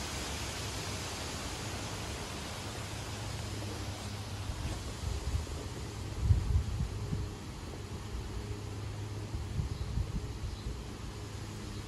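Leaves rustle steadily as wind blows through the trees.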